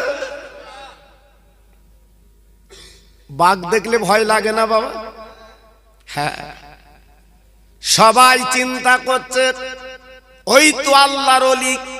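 An elderly man preaches with animation into a microphone, in long sung, drawn-out phrases heard through a loudspeaker.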